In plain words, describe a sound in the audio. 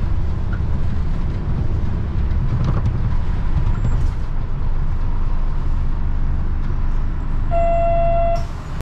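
A vehicle's engine and tyres rumble steadily from inside the vehicle while driving.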